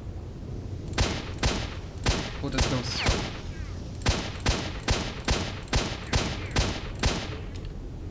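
Heavy footsteps crunch quickly on gravel.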